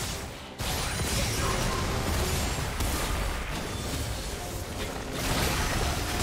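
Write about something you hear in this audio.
Magic spells crackle and blast in a busy fight.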